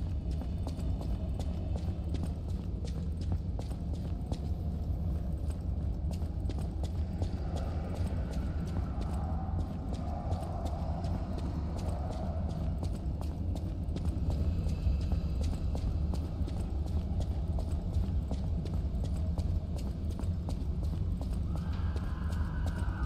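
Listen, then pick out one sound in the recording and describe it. Footsteps run quickly over hard floors.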